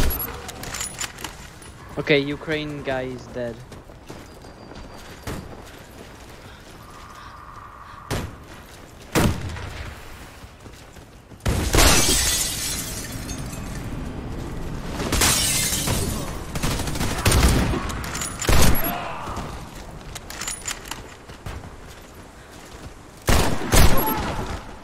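Loud sniper rifle shots crack with sharp echoes.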